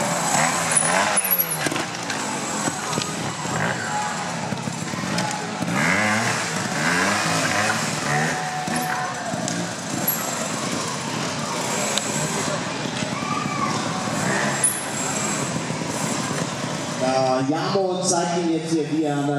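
A motorcycle engine revs and sputters nearby.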